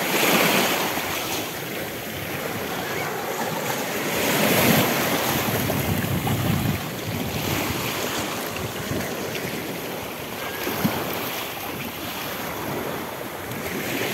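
Shallow water laps and splashes over pebbles close by.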